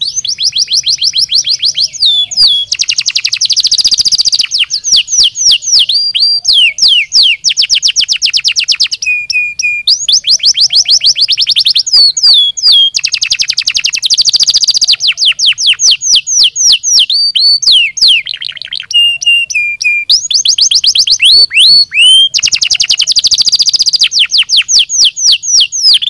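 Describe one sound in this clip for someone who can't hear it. A canary sings close by in long, fast trills and rolling warbles.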